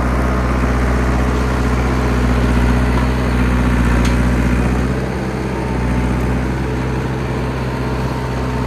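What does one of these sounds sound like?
A bulldozer's diesel engine rumbles steadily close by.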